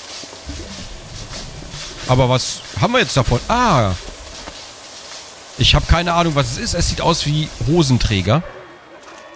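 Water sprays steadily from showers.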